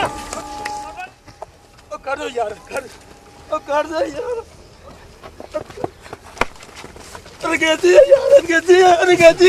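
Feet scuffle on dry earth during a struggle.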